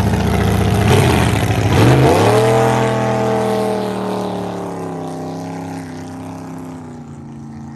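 A speedboat engine roars past and drops in pitch as it moves away.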